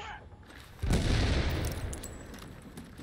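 An explosion booms close by and rumbles away.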